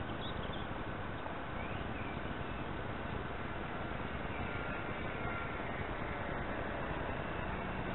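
A model plane's engine buzzes faintly overhead.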